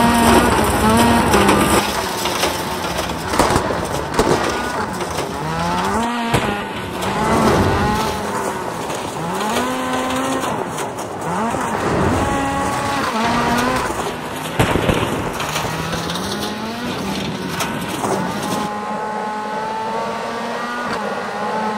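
A rally car engine revs up and down as gears change.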